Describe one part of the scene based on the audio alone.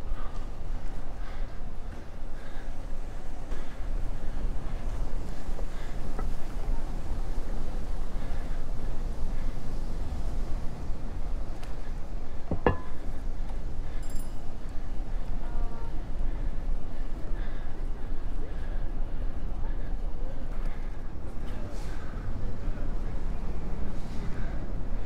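Bicycle tyres rumble over paving stones.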